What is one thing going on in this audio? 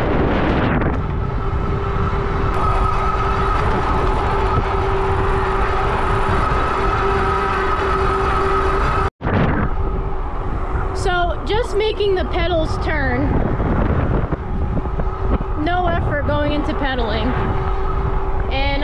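An electric bike motor whines steadily.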